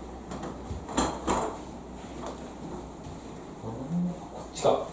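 A door handle clicks as a door opens.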